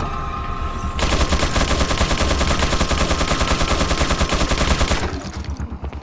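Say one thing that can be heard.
A submachine gun fires rapid, loud bursts in a large echoing hall.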